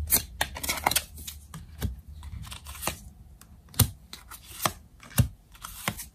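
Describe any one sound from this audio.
Cards tap softly on a table.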